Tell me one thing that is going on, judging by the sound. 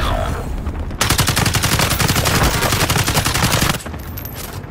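An automatic rifle fires a long burst of gunfire.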